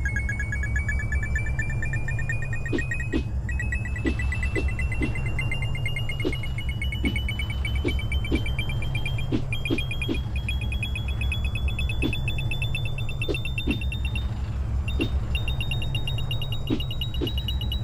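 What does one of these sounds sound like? Upbeat electronic game music plays with a steady thumping beat.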